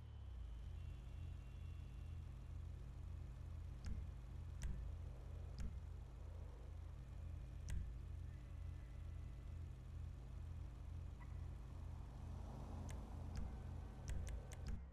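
A car engine idles with a low, pulsing rumble.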